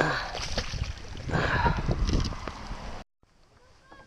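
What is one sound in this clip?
A fish thrashes and splashes in a landing net at the water's surface.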